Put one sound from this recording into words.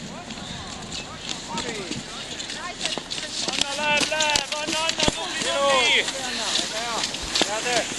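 Skis swish and scrape over packed snow as skiers pass close by.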